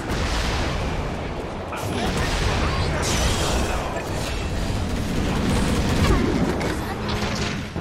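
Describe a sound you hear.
Magic spells burst and weapons clash in a frantic fantasy battle.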